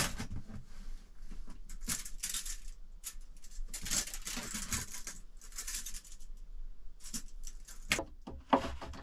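A metal tape measure slides out and retracts with a rattle.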